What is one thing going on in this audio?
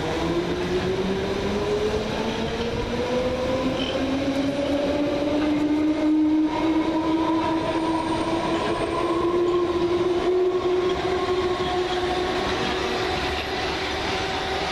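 A train pulls away with a rising electric motor whine.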